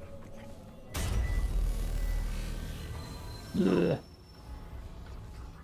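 A deep magical rumble swells and hums.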